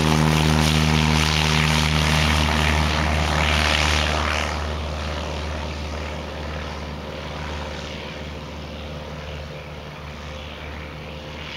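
A small propeller plane's engine drones loudly, then fades into the distance.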